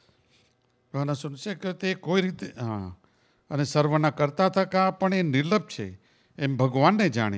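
An elderly man sings loudly into a microphone.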